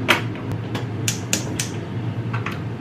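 A gas stove's igniter clicks.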